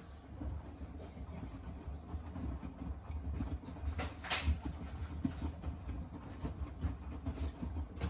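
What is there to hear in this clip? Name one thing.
Wet laundry sloshes and thumps inside a washing machine drum.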